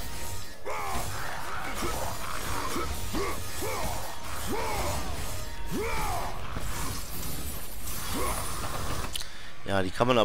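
Blades whoosh and clash in a fast fight.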